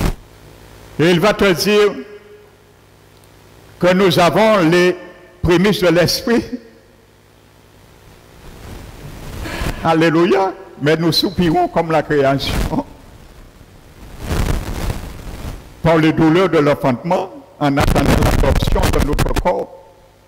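A man speaks with animation through a headset microphone and loudspeakers, in a reverberant hall.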